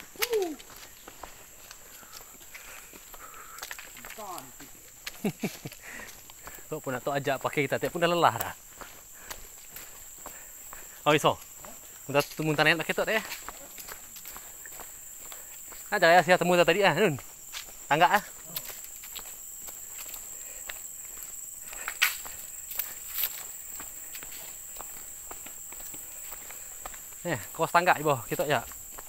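Footsteps scuff along a stone path.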